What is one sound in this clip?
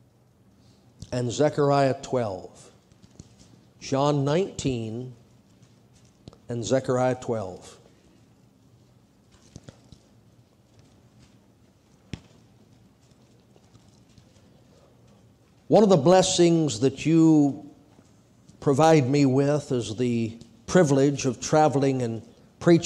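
An older man speaks slowly and calmly into a microphone, in short phrases with pauses.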